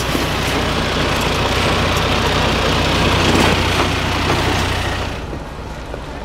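A heavy truck engine roars loudly, straining uphill.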